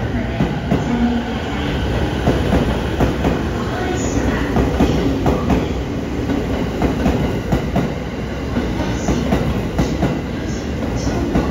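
A train rumbles past along the tracks.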